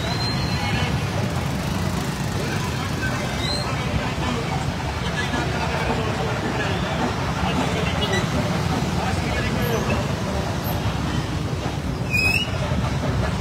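Many motorcycle engines rumble and hum steadily nearby.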